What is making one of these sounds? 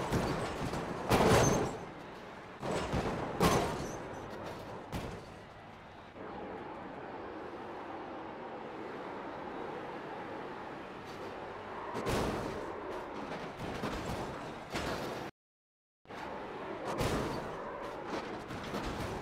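Tyres screech as a car spins out.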